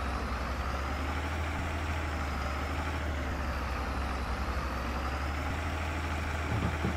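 A tractor engine rumbles steadily at low speed.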